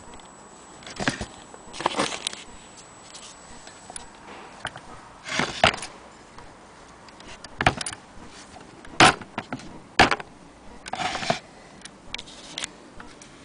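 Metal parts of an old sewing machine click and clack as a hand works them.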